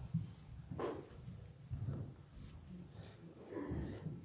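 Footsteps thud across a floor close by.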